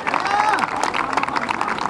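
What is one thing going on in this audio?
A crowd of young people cheers and whoops.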